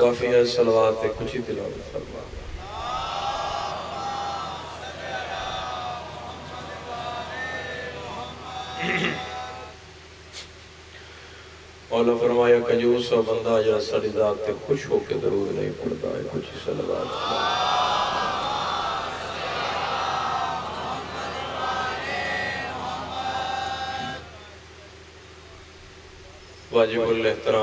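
A young man recites in a melodic, chanting voice through a microphone.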